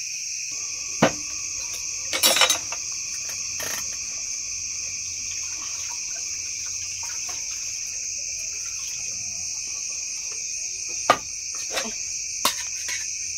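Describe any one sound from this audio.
A metal pot and dishes clink and knock.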